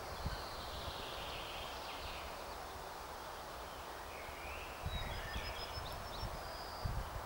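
A light wind blows through pine trees.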